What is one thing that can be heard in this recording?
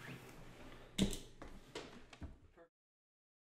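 An acoustic guitar is strummed briefly.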